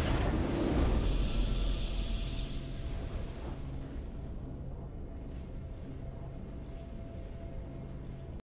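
A triumphant game fanfare swells and rings out.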